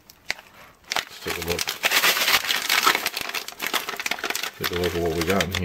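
A plastic pouch tears open.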